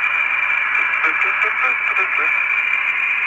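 A man speaks briefly over a crackling radio.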